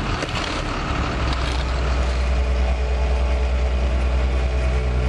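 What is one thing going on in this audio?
The diesel engine of a ride-on asphalt roller rumbles.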